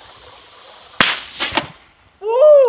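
A water bottle rocket launches with a sudden whoosh and spray.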